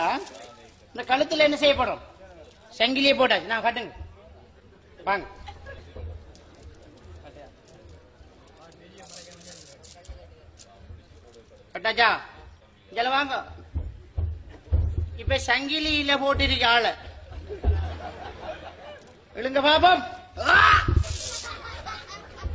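A man speaks loudly and with animation through a microphone.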